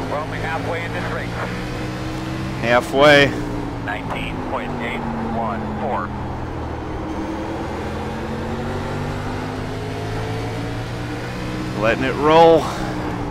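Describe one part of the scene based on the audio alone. A racing car engine drones steadily, rising and falling in pitch.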